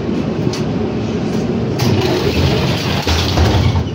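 Footsteps thud on a tram floor as passengers board.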